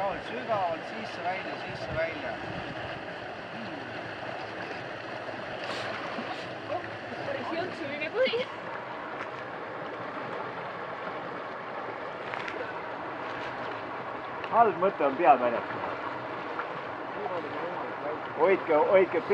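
A swimmer splashes through cold water.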